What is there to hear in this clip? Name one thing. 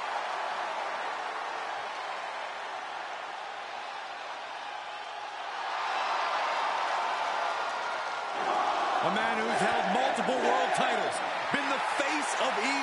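A large crowd cheers and roars in a big echoing arena, swelling louder partway through.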